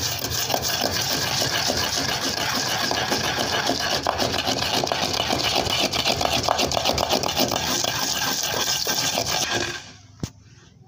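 A wooden pestle grinds and scrapes spices in a clay mortar rapidly.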